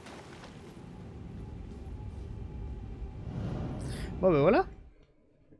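A magical shimmer swells and rises.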